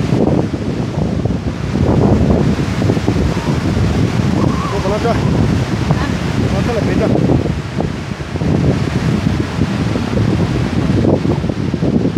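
A large waterfall roars steadily nearby.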